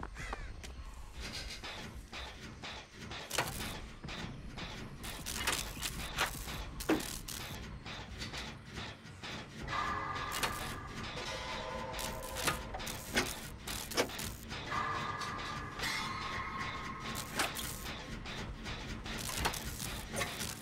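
A machine clanks and rattles as it is worked on.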